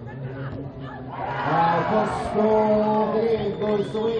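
A crowd of spectators cheers and sings outdoors.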